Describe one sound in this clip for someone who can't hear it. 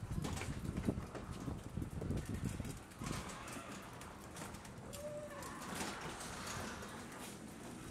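A garage door rumbles and rattles as it rolls open.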